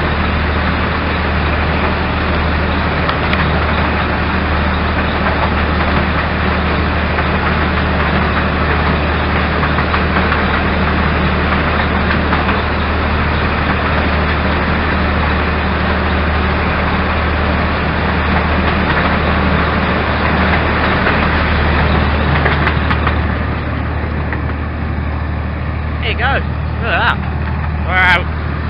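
Wheels clatter and rattle on a narrow track.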